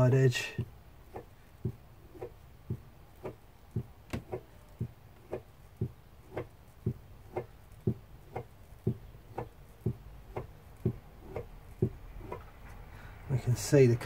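A wooden strip is rubbed by hand in short, regular strokes.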